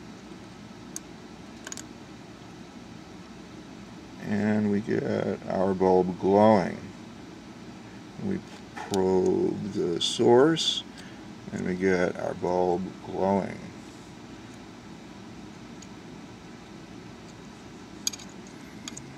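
A small metal clip clicks onto a wire.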